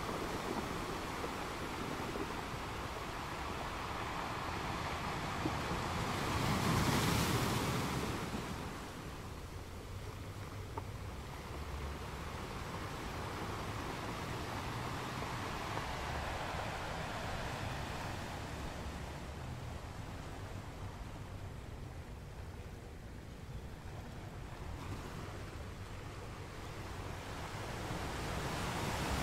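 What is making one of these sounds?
Water washes and hisses over rocks near the shore.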